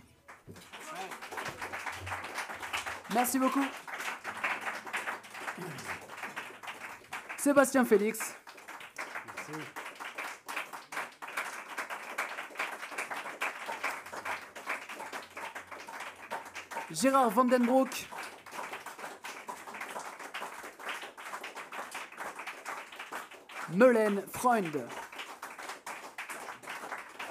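Acoustic guitars strum a lively rhythm.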